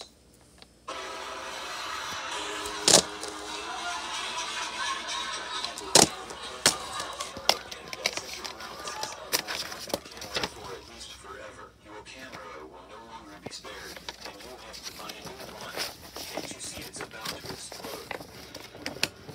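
Plastic cases clatter and tap against each other.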